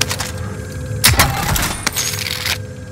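A metal crate clanks open.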